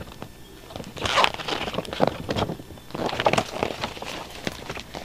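Plastic packaging rustles and crinkles as it is handled.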